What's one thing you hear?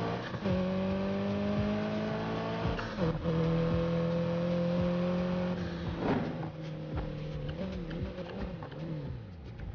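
A car engine roars loudly and revs up through the gears.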